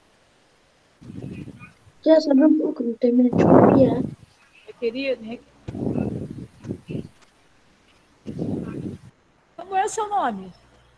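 A young woman talks through an online call.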